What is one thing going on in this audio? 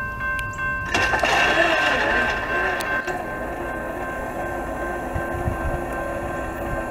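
A freight train rumbles loudly past on the tracks.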